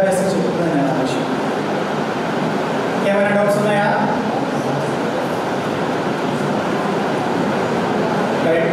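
A middle-aged man speaks with animation into a microphone, heard through a loudspeaker in an echoing room.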